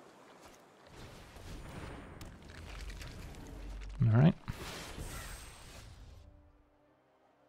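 Magical whooshes and chimes ring out as cards are played.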